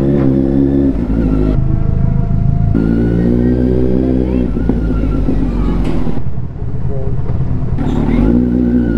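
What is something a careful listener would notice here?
A motorcycle engine rumbles and revs up and down close by.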